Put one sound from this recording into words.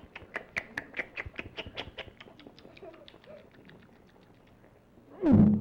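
A man speaks in a comical puppet voice close by.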